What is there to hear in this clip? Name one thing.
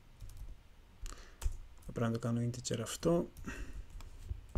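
A man speaks calmly through a computer microphone.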